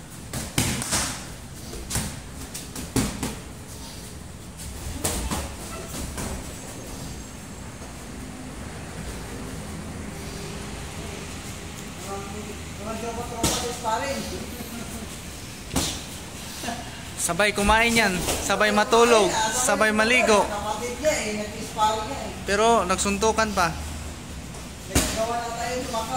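Boxing gloves thud sharply as punches land.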